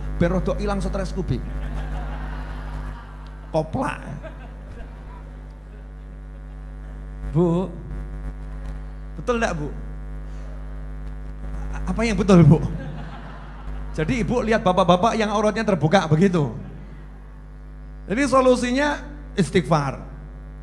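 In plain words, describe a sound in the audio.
A middle-aged man speaks and sings with animation into a microphone, in short bursts with pauses.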